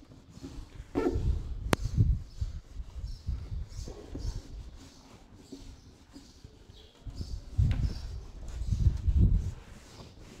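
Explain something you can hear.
A duster rubs against a whiteboard.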